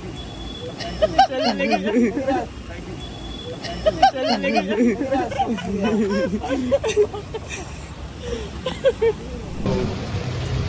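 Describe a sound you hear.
A crowd of men nearby talk and call out excitedly.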